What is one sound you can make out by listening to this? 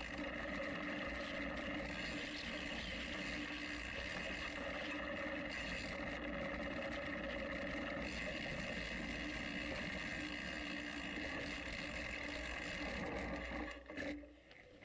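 Bicycle tyres roll and hum over rough grassy ground.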